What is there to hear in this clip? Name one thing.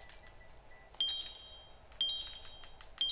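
Short electronic menu chimes ring out.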